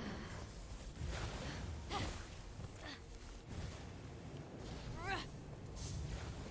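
Short airy whooshes sweep past as a figure dashes and leaps.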